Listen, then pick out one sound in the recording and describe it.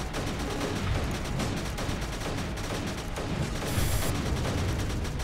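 Rapid game laser shots and small explosions crackle steadily.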